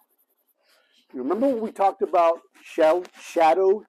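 A man speaks calmly and with animation close by.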